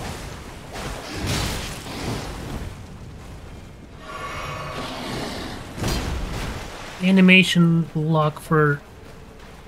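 Water splashes under heavy footsteps.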